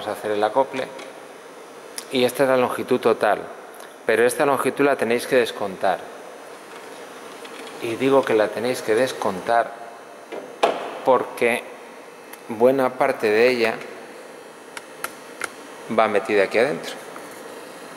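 A man talks calmly close by, in short phrases with pauses.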